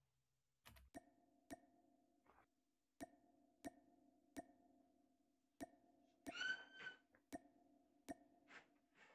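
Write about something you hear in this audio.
Short interface clicks tick as menu selections change.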